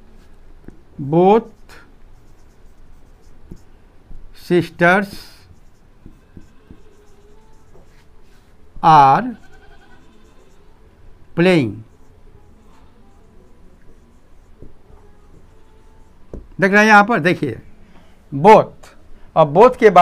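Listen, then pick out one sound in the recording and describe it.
An elderly man speaks slowly in short phrases, close by.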